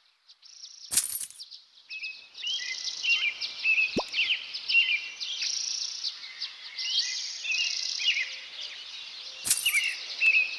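A game button clicks with a chime.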